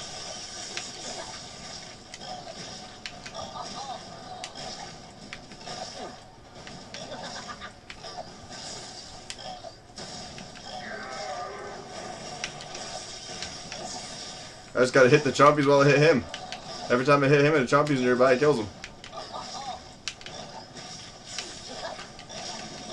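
Zaps and blasts sound in a video game battle.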